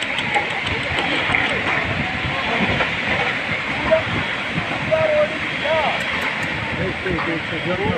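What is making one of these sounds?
Earth and rocks rumble and slide down a steep slope.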